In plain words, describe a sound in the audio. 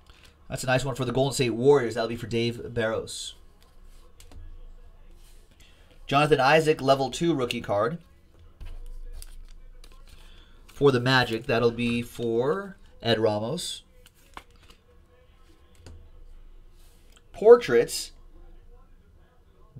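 Plastic card cases click and rustle in hands.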